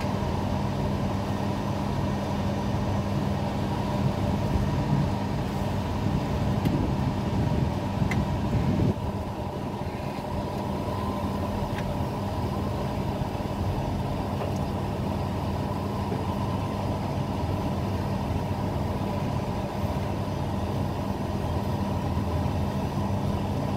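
A crane's motor hums steadily close by.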